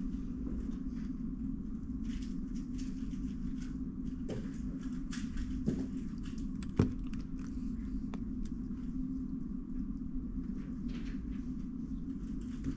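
Plastic puzzle cube layers click and clack as they are turned quickly.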